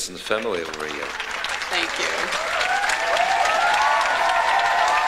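A large outdoor crowd applauds and cheers.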